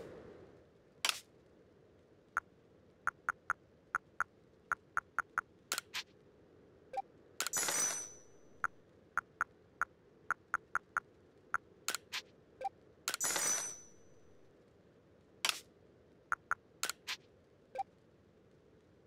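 Menu blips tick quickly as a cursor moves.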